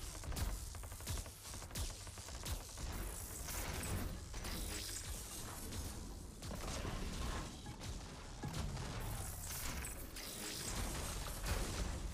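Heavy impacts and blasts boom repeatedly.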